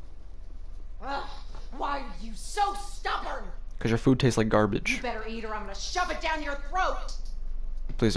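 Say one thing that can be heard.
An elderly woman speaks close by in a taunting, menacing voice.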